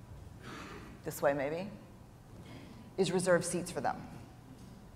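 A woman speaks with animation into a microphone in a large hall.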